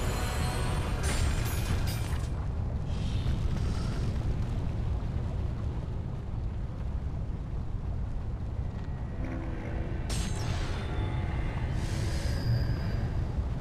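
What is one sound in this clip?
Sword blades clash and slash in quick bursts.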